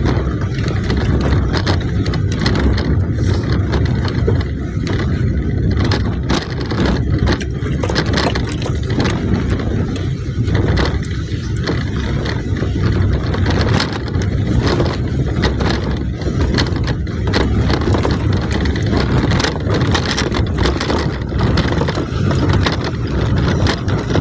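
Tyres crunch and rattle over a rough gravel road.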